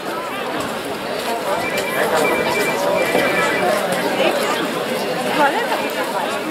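People chatter together outdoors in the open.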